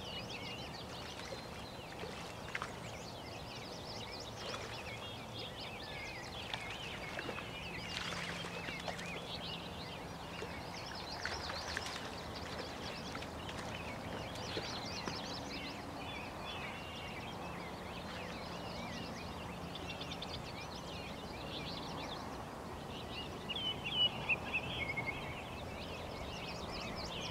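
Water ripples gently around a person wading.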